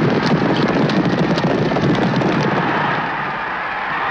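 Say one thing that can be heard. Horses' hooves pound on a track.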